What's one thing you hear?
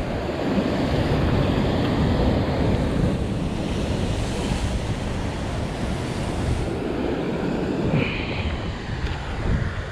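Waves surge and crash against rocks below.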